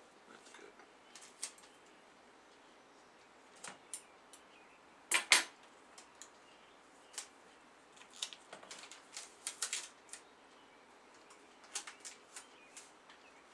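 Paper rustles and crinkles in someone's hands.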